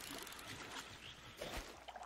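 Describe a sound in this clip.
A spear splashes into water.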